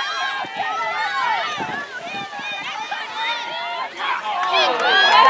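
A large crowd of young people cheers and shouts outdoors.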